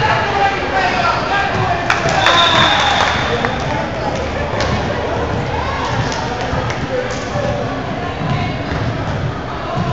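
Players shout and call to each other in a large echoing gym.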